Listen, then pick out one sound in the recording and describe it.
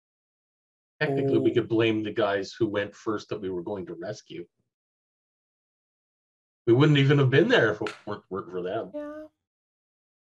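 Adult men talk with animation over an online call.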